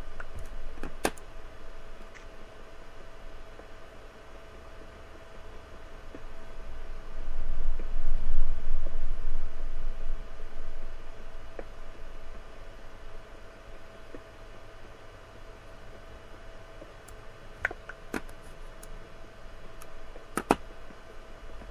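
A pickaxe chips and knocks at stone blocks.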